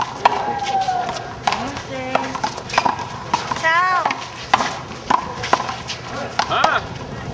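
A small rubber ball smacks sharply against a wall and the ground.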